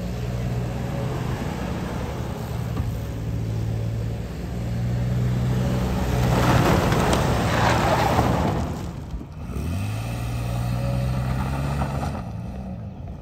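An engine revs hard.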